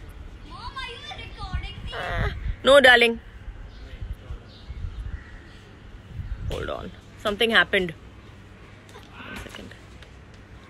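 A young woman talks animatedly close to a phone's microphone.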